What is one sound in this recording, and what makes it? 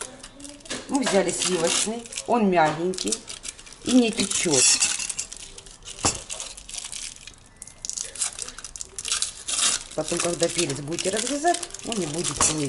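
Foil wrappers crinkle and rustle as they are peeled open.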